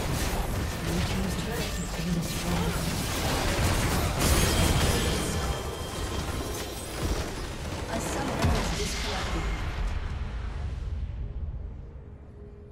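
Game spell effects blast and crackle in a busy fight.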